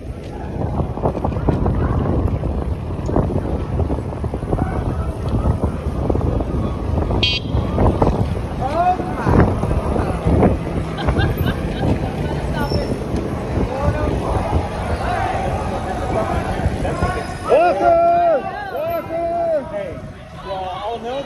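Wind rumbles loudly past a moving bicycle outdoors.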